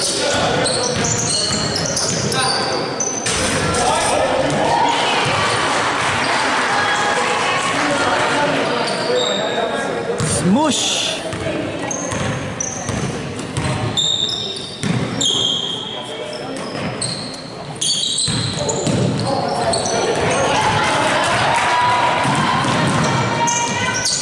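Young men shout and call out across an echoing gym.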